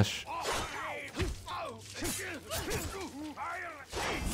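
Blades clash and strike in a close fight.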